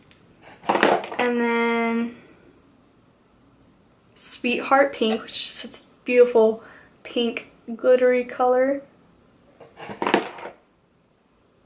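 A young woman talks calmly and closely into a microphone.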